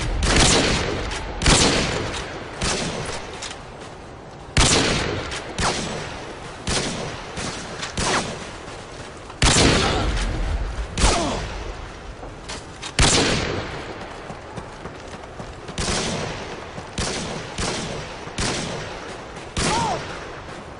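Gunshots crack one after another and echo loudly.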